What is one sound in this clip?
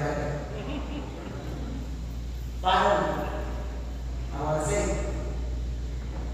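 A man speaks earnestly through a microphone in an echoing hall.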